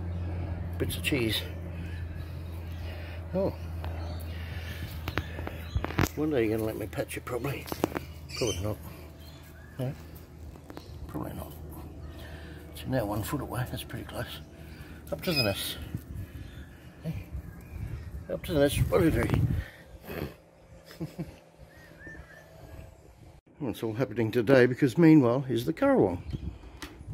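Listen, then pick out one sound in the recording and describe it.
A magpie warbles and carols nearby.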